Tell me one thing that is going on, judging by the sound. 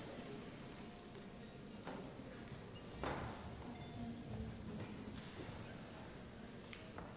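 An orchestra of strings and percussion plays in a large hall.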